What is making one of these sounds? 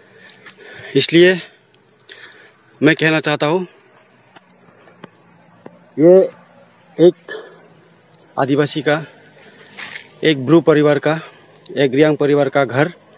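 A middle-aged man speaks earnestly, close to the microphone.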